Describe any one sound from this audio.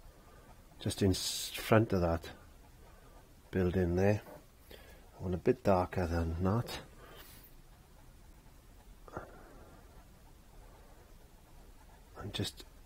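A brush strokes softly across canvas.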